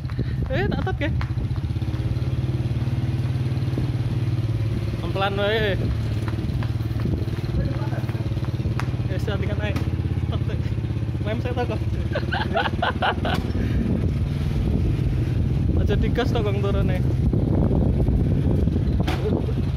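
A motorcycle engine idles and putters steadily close by.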